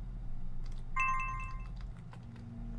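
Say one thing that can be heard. A soft electronic chime rings as a game saves.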